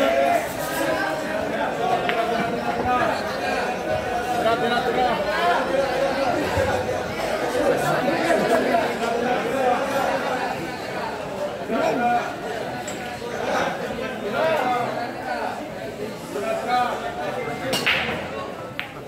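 A crowd of young men chatters and murmurs nearby.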